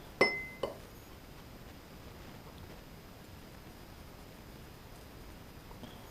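A knife scrapes butter across a slice of bread.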